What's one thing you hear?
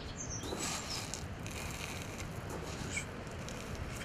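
Small hard pellets rattle as a hand scoops through them.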